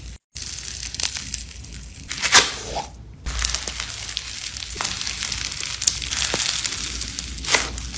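Soft slime crunches and crackles as fingers squeeze and knead it.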